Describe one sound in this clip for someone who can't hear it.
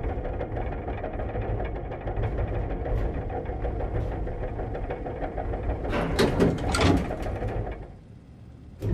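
A lift rumbles and hums steadily as it moves.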